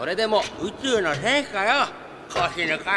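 A man speaks mockingly.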